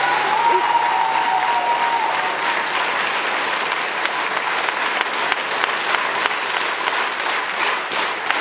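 A musician plays loud live music in a large echoing hall.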